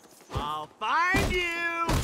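Heavy blows thud as fists strike.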